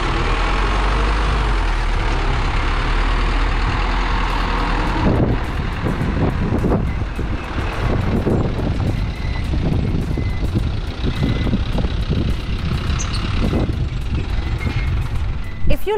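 A loaded truck's engine rumbles loudly as it drives past close by, then fades into the distance.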